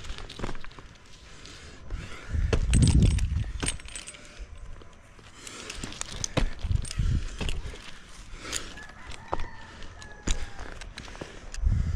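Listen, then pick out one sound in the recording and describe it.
A climber's gloved hands and boots scrape and knock against rough tree bark.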